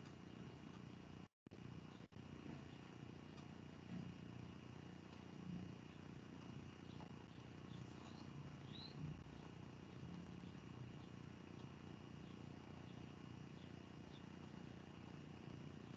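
A man speaks quietly over an online call.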